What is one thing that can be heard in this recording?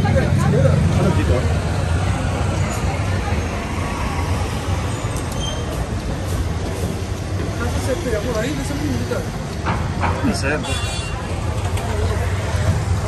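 Street traffic rumbles steadily below.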